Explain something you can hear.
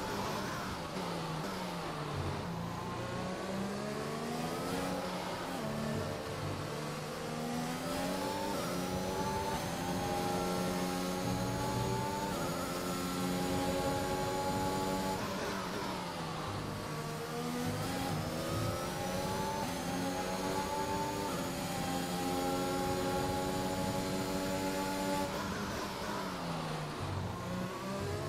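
A racing car engine screams, rising in pitch through the gears and dropping sharply when braking.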